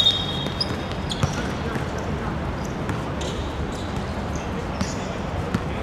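Footsteps run across a hard court.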